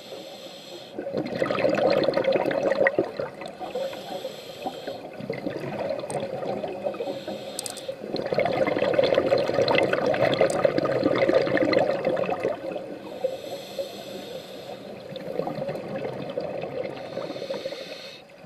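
A diver breathes in through a regulator with a hollow hiss.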